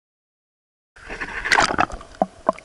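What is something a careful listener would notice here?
Water splashes and gurgles close by.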